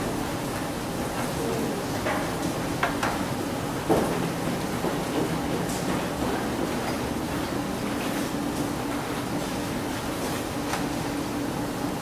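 Footsteps and knocks thud on a wooden stage in a large hall.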